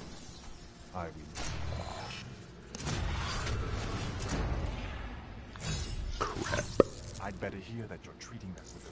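Bright chimes ring out as cards flip over.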